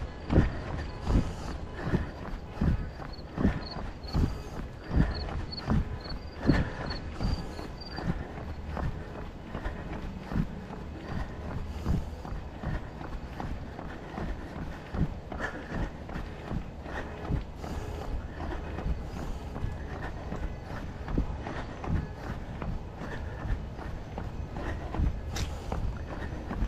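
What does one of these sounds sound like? Footsteps tap steadily on a paved path outdoors.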